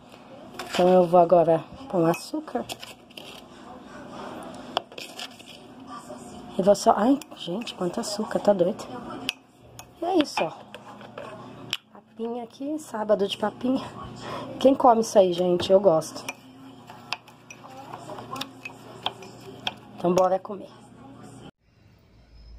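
A metal spoon scrapes and taps against a bowl while stirring.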